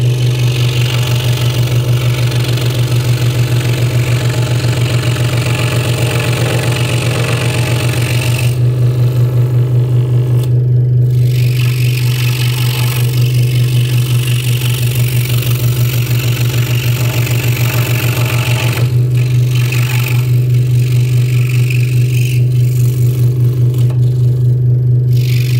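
A scroll saw hums and buzzes steadily as its blade cuts through wood.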